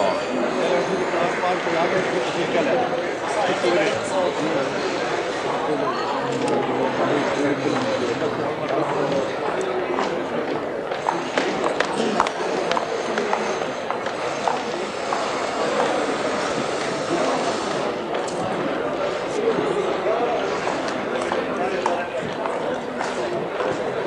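A crowd of men murmurs and talks all around, close by.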